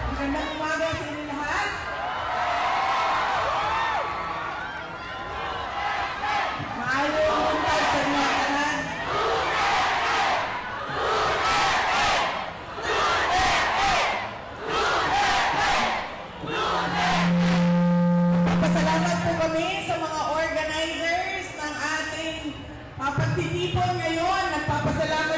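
A large crowd cheers and sings along outdoors.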